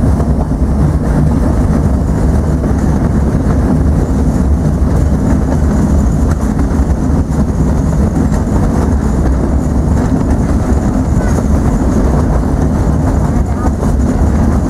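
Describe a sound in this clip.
Wind rumbles steadily and rustles leaves outdoors.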